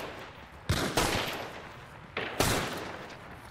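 Revolver shots ring out, loud and echoing.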